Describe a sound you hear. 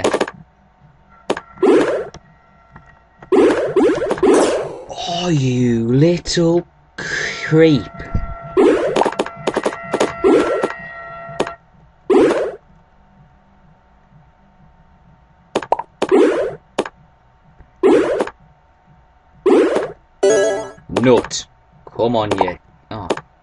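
A young man speaks with animation close to a microphone, in short bursts.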